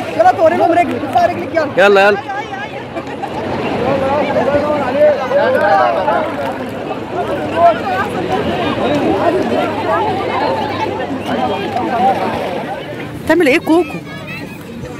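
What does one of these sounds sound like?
Many children and adults chatter and call out nearby outdoors.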